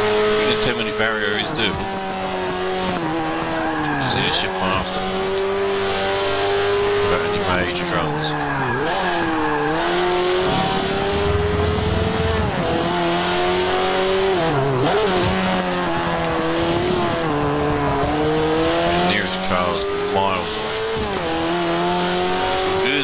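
Tyres squeal through the corners.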